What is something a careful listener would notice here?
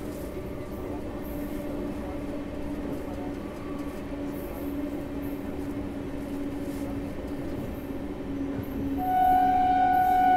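A train rumbles and clatters steadily along the rails.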